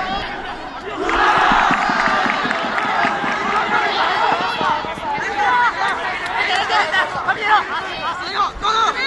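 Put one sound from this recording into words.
A crowd of young people cheers and shouts nearby outdoors.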